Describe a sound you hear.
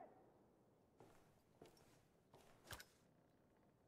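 A rifle rattles and clicks as it is raised and handled.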